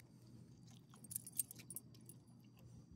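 Metal tags jingle on a dog's collar.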